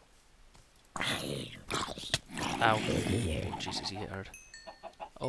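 A sword strikes a monster with dull thuds.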